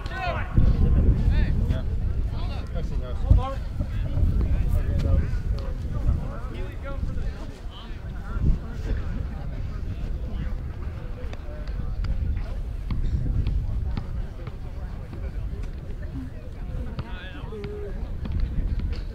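Young men chatter and call out nearby.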